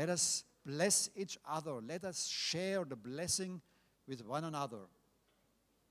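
A middle-aged man speaks with animation into a microphone, heard through loudspeakers in a large hall.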